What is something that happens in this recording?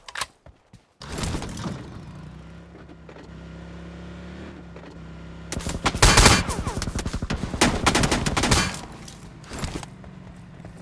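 An off-road buggy's engine roars and hums steadily.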